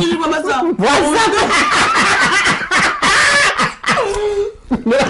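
A young man and a young woman laugh loudly together.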